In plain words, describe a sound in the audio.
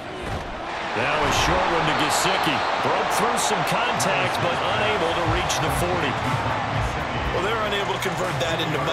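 A stadium crowd cheers and roars loudly.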